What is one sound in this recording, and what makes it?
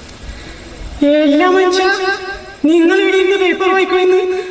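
A young man sings loudly into a microphone through loudspeakers.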